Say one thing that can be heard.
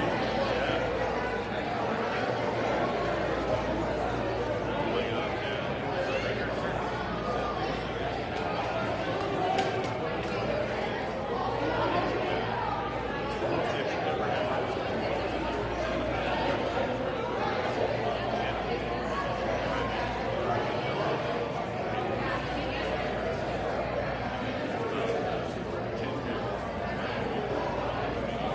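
A young woman speaks into a microphone over loudspeakers in a large echoing room.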